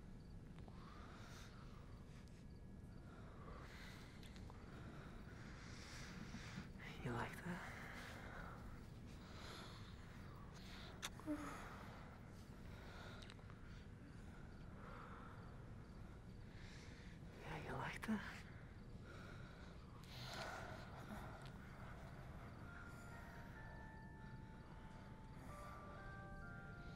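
A young woman breathes heavily and sighs softly, close by.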